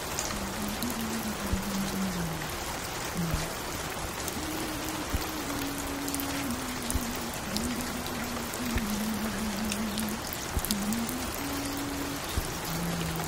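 Music plays from a record player with a slow, simple melody.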